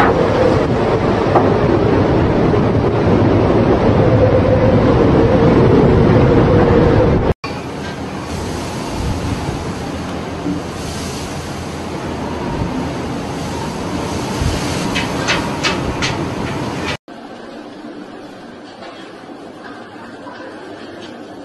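Heavy waves crash and surge against a ship's hull.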